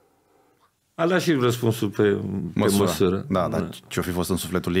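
A middle-aged man speaks into a close microphone.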